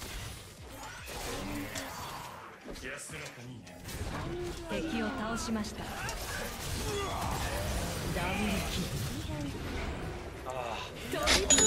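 Game spells and hits crackle and thump in a fight.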